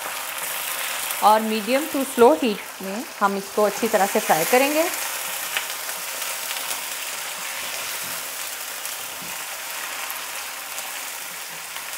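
A spatula scrapes and stirs against a metal pan.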